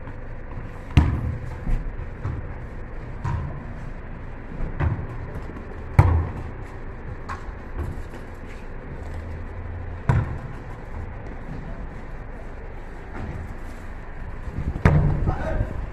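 A ball thuds against a wall and bounces on pavement.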